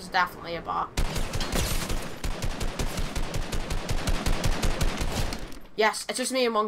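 A rapid burst of gunfire rattles in quick succession.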